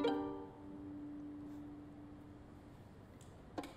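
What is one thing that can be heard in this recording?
A violin holds a final note and fades.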